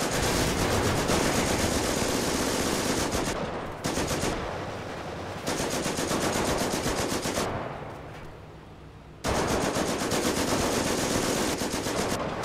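Gunfire crackles in a battle.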